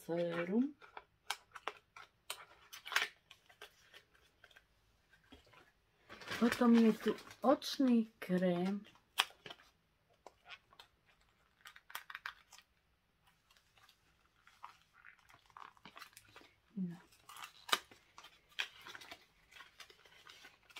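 Plastic packaging crinkles and rustles in hands.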